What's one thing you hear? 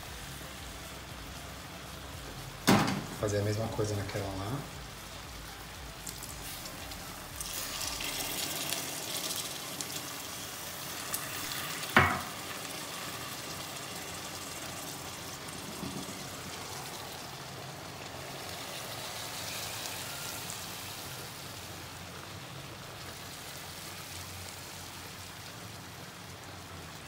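Mussels sizzle and bubble in pans.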